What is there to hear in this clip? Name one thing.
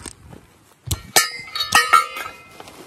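A backpack's straps and buckles rustle and clack as it is handled.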